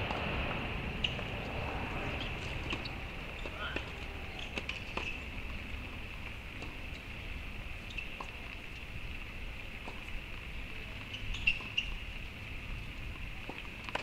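Tennis balls pop off rackets in the distance, outdoors.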